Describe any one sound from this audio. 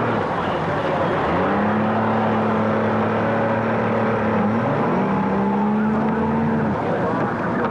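Outboard engines roar as a boat pulls away across water.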